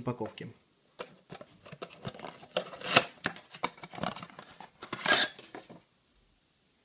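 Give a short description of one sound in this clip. A cardboard box rustles and scrapes as hands open it.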